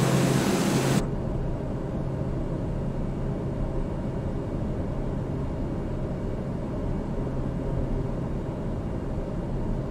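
A single-engine turboprop hums muffled, heard from inside the cockpit.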